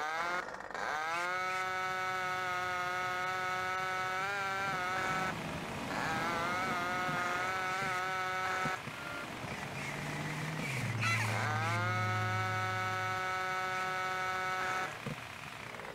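A small motor scooter engine buzzes and revs.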